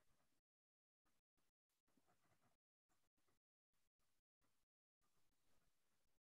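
A woman speaks calmly through an online call, in short bursts with gaps of silence.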